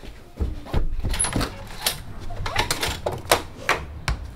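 A door rattles open.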